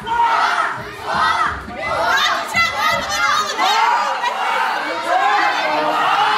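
A crowd shouts and chants in a large echoing hall.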